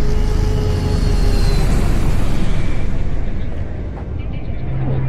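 A flying vehicle roars past with a loud whoosh.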